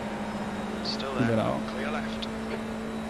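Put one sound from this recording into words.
A young man speaks briefly and casually into a microphone.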